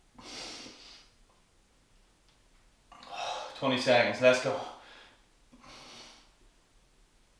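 A man breathes out hard with effort, in short bursts.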